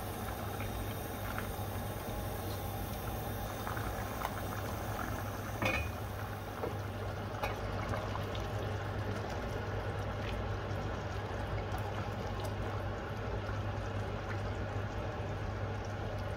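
A stew simmers and bubbles in a pot.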